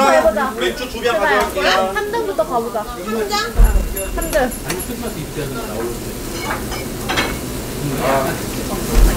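Young men and women chat and laugh nearby.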